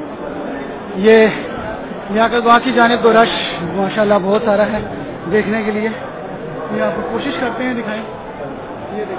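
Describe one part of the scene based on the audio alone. A crowd of men chants and shouts loudly close by.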